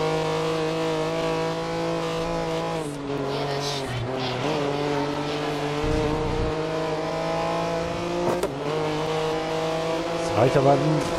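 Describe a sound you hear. A prototype race car engine roars at high revs.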